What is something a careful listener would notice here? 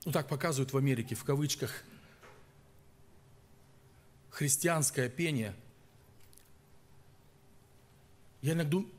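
A middle-aged man speaks with animation into a microphone, pausing between phrases.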